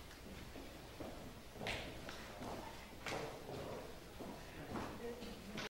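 Footsteps knock on a hard floor as people walk away.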